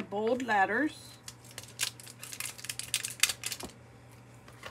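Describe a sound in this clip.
A plastic case clicks and rattles as it is handled.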